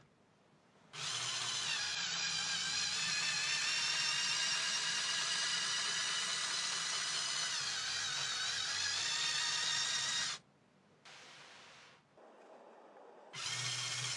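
A small electric motor whirs steadily as a toy vehicle drives and climbs.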